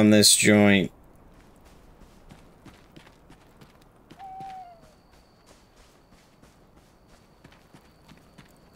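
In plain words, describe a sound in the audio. Footsteps patter softly over grass.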